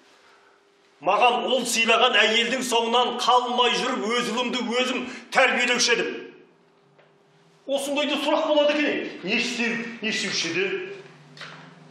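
A middle-aged man shouts angrily close by.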